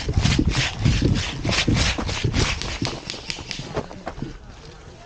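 Footsteps crunch quickly over dry ground.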